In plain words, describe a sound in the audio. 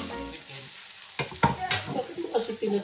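A wooden spatula scrapes against a frying pan.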